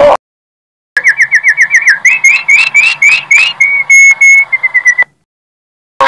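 A small bird chirps in quick, repeated high notes.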